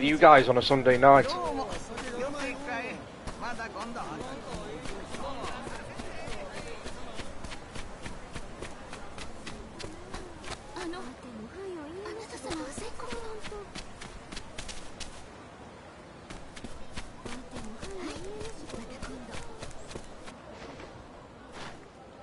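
Footsteps patter quickly on packed earth and stone steps.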